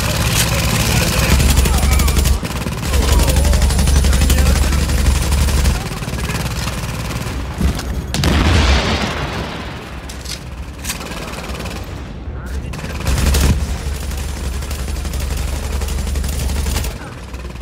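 Gunfire crackles in rapid bursts.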